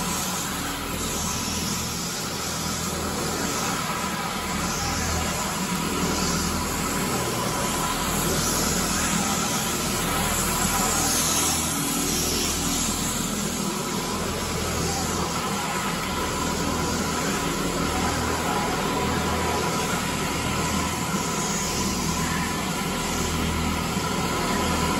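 A floor scrubber machine hums and whirs steadily as it rolls across a hard floor.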